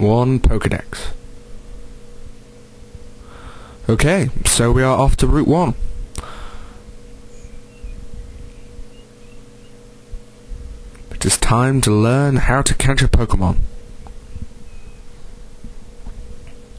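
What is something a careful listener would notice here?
Soft video game music plays steadily in the background.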